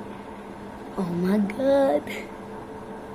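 A girl speaks with animation close by.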